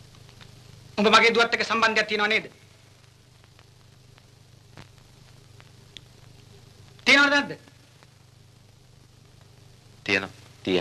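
A man speaks in short, curt bursts.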